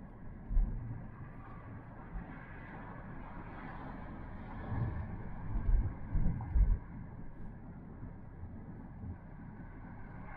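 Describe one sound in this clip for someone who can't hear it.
A man talks calmly inside the car.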